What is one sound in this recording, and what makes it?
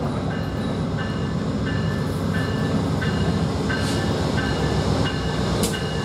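A train rumbles as it slowly approaches.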